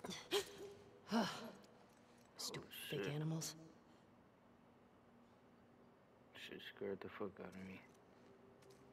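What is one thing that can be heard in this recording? Wolves growl and snarl close by.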